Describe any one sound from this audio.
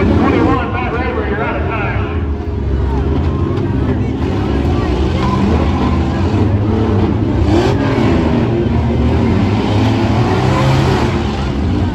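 A crowd murmurs and cheers nearby.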